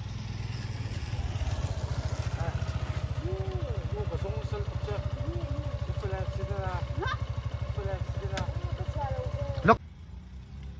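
A motorcycle engine idles with a steady, fast putter nearby.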